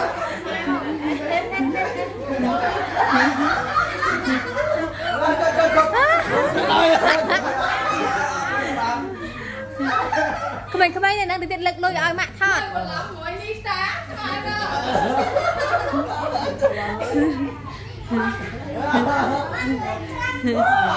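Children chatter and shout excitedly close by.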